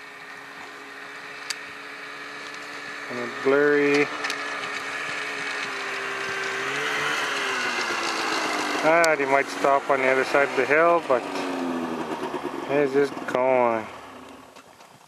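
Wind blows steadily across open ground outdoors.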